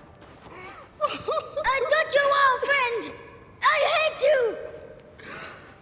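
A woman wails and sobs nearby.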